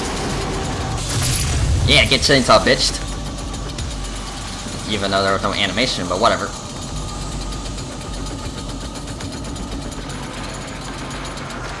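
A chainsaw engine idles with a low rumble.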